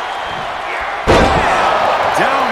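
A wrestler slams onto a ring mat with a heavy thud.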